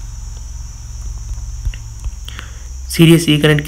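Phone keyboard keys click softly a few times.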